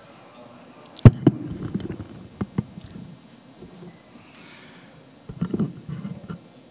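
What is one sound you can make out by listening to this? Cutlery and plates clink on tables.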